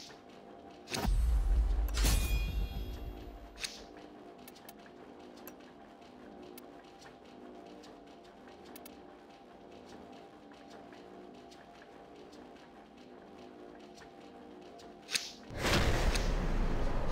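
A deep rumbling whoosh swells and fades.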